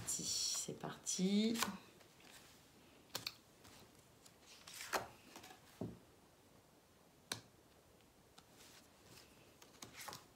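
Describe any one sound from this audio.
Cards are laid down softly on a cloth-covered table.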